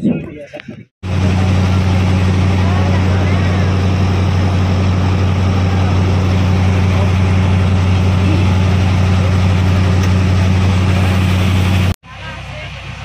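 A boat engine drones steadily.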